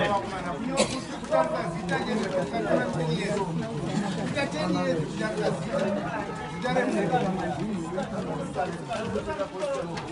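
A crowd of men and women chatter all around, close by, outdoors.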